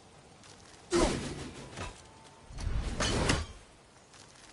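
An axe whooshes through the air in hard, sudden swings.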